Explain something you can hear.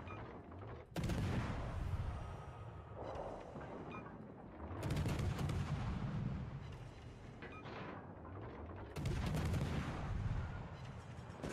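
Naval guns fire in loud booming salvos.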